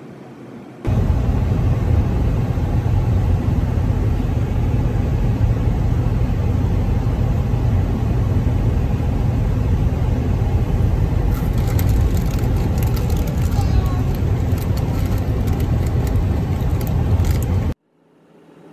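A car drives along a highway, with a steady low rumble of tyres and engine heard from inside.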